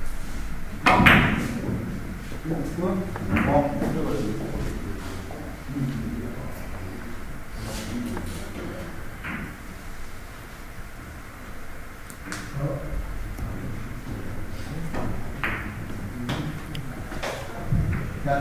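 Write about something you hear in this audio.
Billiard balls click sharply against each other and the cushions.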